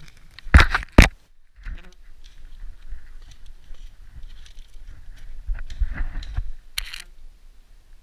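An airsoft gun fires a few sharp shots up close.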